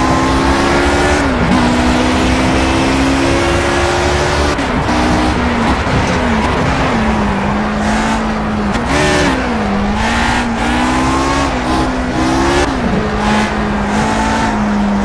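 A racing car engine roars, its pitch rising and dropping as gears shift.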